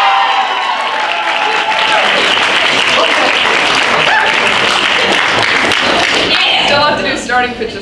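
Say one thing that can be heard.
A group of young people applauds.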